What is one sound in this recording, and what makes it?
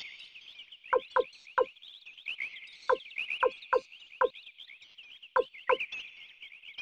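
Short electronic menu blips sound in quick succession.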